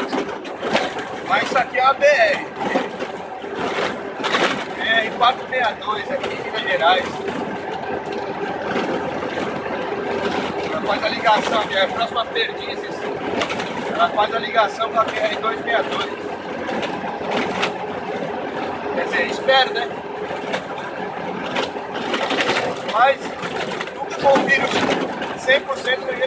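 Tyres rumble and crunch over a dirt road.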